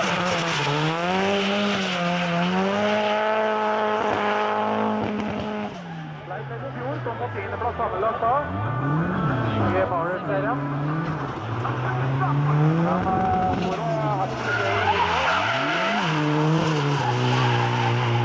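Tyres screech on tarmac.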